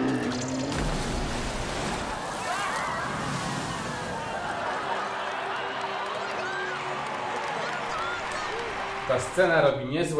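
Water splashes and crashes down heavily.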